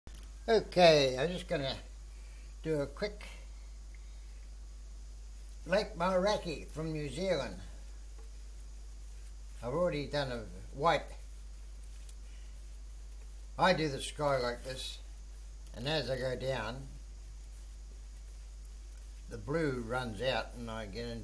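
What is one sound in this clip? A man talks close by in short phrases with pauses.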